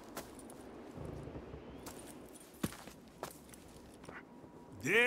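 Heavy boots thud as a man crouches.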